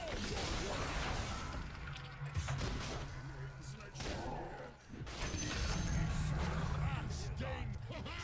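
Game spells crackle and blast in quick bursts.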